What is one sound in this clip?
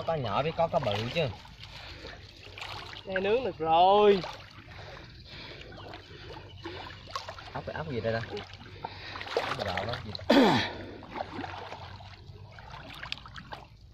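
Water splashes as a man wades.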